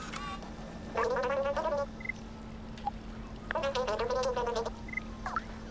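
A cartoonish character voice babbles in short, high, chirping bursts.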